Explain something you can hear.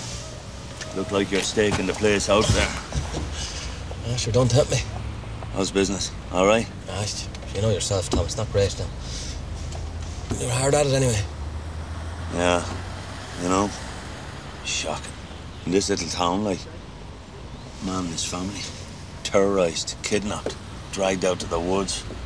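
A middle-aged man talks calmly through a car window.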